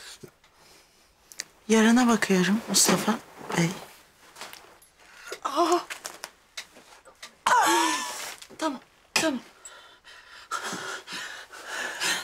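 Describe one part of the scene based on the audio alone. A woman speaks close by in a tearful, pleading voice.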